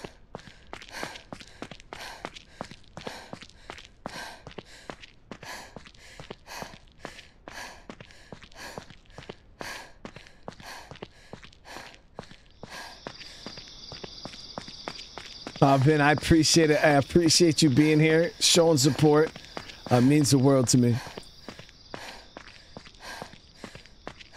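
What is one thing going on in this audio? Footsteps patter quickly and steadily on pavement.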